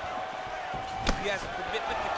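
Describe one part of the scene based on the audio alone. A kick lands with a sharp thud.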